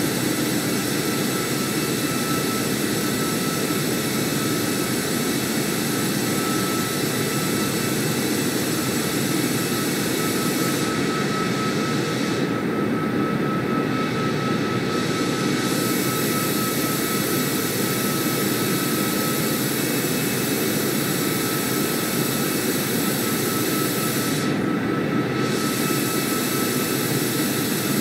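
Jet engines roar steadily as an airliner flies.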